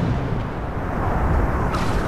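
An explosion booms and crackles.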